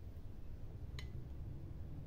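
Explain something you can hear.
A hard plastic stand clicks as it is lifted off a table.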